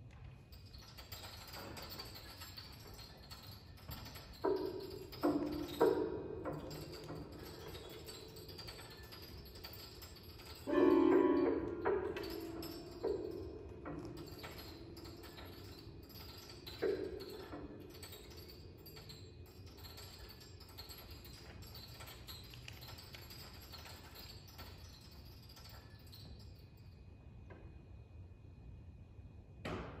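A pianist plucks and strikes the strings inside a grand piano, with notes ringing out in an echoing hall.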